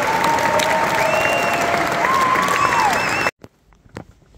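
A crowd applauds loudly in a large hall.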